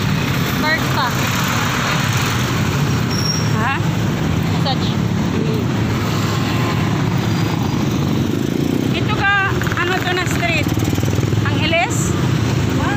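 Heavy traffic rumbles steadily close by outdoors.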